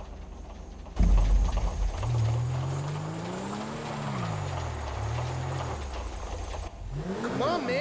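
A car engine revs and hums as the car drives slowly.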